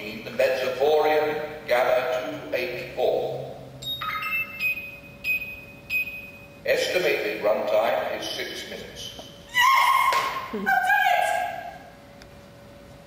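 A man speaks loudly over a loudspeaker.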